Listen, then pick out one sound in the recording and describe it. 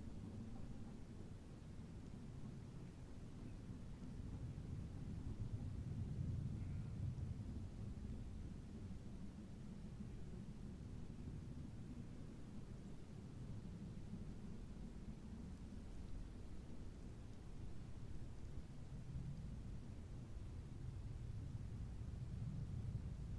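A steam train chugs steadily in the distance.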